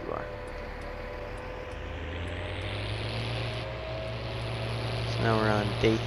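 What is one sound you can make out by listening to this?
A truck engine hums and rumbles steadily.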